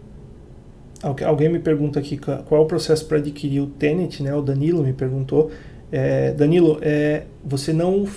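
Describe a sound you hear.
A man speaks calmly and steadily into a close microphone, as on an online call.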